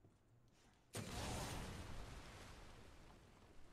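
A gun fires with a loud blast and crackling.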